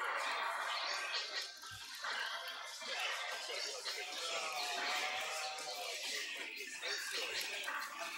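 Video game fighting sound effects play with hits and jingles.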